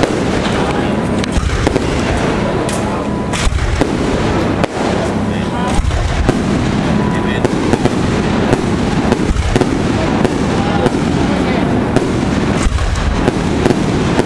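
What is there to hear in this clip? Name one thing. Fireworks burst with loud booms and sharp bangs outdoors.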